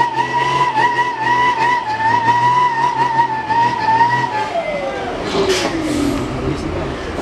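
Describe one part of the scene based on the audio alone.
A heavy truck engine strains and whines, then winds down.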